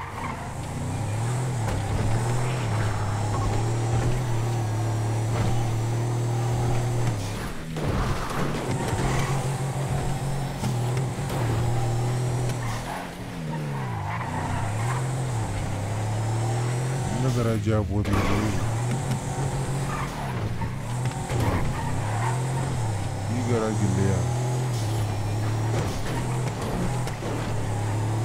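A car engine roars steadily at high speed, rising and falling in pitch as it shifts gears.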